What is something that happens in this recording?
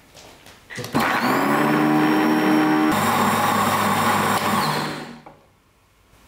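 A blender whirs loudly, then stops.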